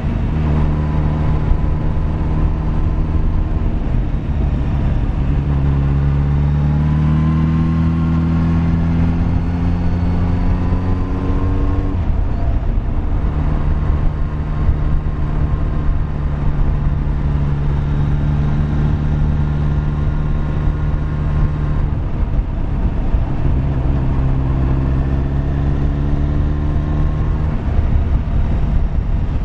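A motorcycle engine drones close by, rising in pitch as it speeds up and dropping as it shifts gear.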